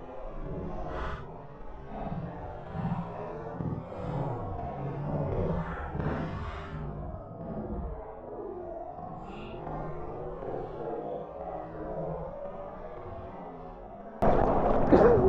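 Water splashes and churns heavily, muffled as if underwater.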